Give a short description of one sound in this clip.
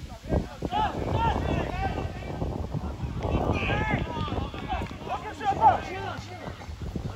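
Young men shout to each other outdoors, some distance away.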